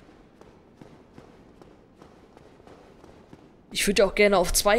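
Heavy armoured footsteps thud on a stone floor at a steady pace.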